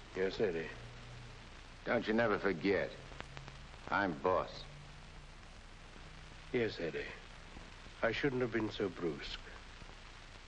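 A young man speaks earnestly, close by.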